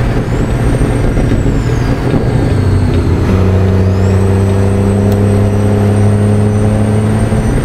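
A truck engine drones steadily at low pitch while driving.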